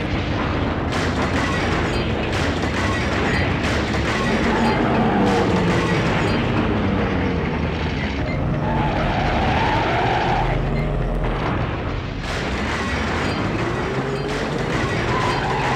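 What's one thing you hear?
A racing car's engine roars steadily.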